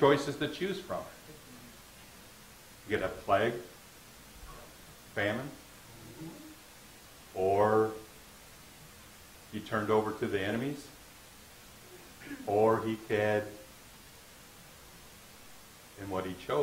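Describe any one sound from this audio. A man speaks through a microphone in short bursts with pauses, in a slightly echoing room.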